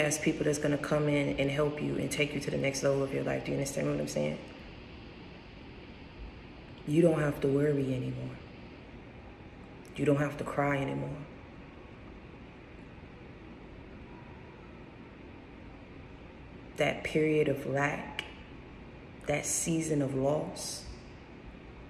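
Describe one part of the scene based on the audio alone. A young woman speaks close to the microphone in short, casual bursts with pauses between.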